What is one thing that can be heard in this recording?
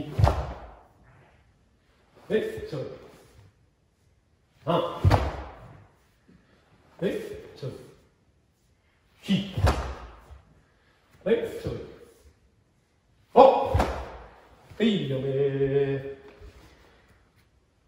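A man shouts short, sharp calls in an echoing hall.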